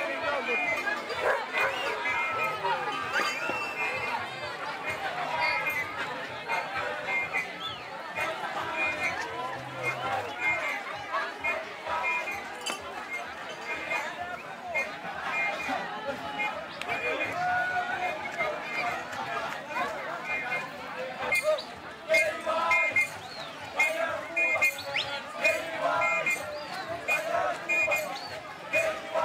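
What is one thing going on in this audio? A large crowd of men, women and children shouts and chants excitedly outdoors.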